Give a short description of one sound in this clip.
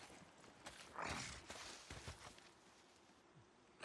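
Bushes rustle as someone pushes through them.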